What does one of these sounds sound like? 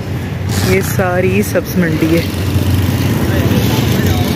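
A motorcycle engine runs close by.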